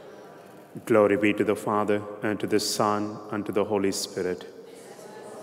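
A man chants into a microphone in a large echoing hall.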